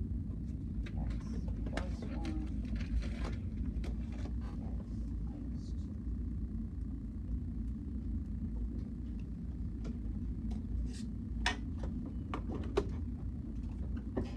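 A man taps the keys of a calculator.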